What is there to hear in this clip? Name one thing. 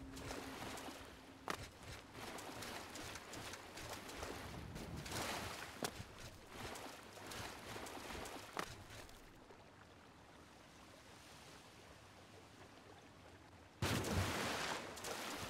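A stream of water flows and babbles over rocks.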